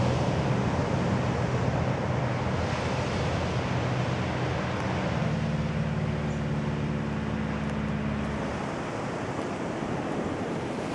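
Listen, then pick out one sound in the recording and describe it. Wind blows and rustles through leaves outdoors.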